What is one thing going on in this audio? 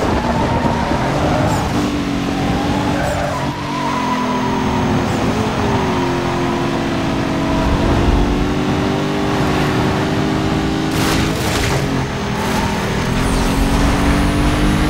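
Tyres rumble and hiss over rough snowy road.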